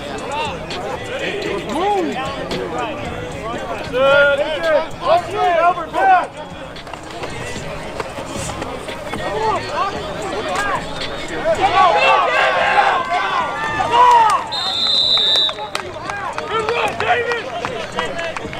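Young men and women shout and cheer from the sideline outdoors.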